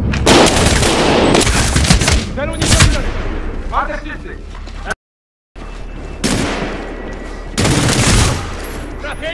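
Loud bursts of rapid gunfire ring out.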